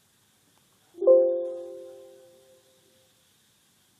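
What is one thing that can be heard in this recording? A computer alert chime rings once and fades.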